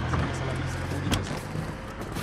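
A car door opens with a thud.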